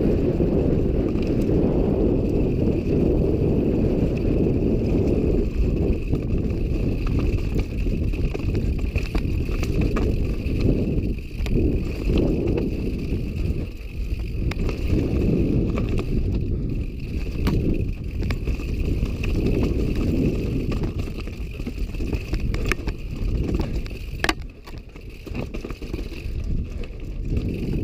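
Bicycle tyres crunch and rattle over rocky dirt.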